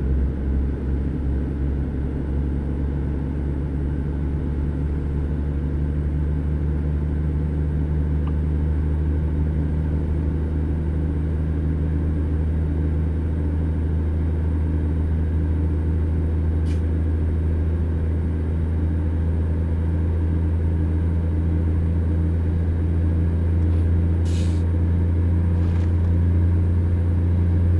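A truck's diesel engine rumbles low and steady from inside the cab.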